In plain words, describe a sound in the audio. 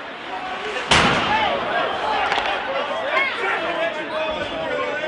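Spectators cheer and shout loudly in an echoing rink.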